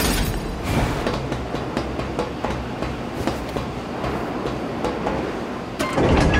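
Footsteps clatter quickly on a metal walkway.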